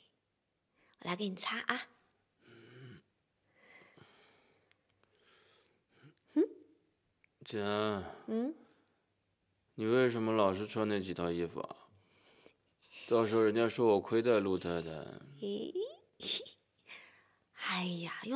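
A young woman talks playfully and cheerfully nearby.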